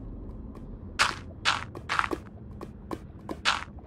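A block is set down with a dull thud.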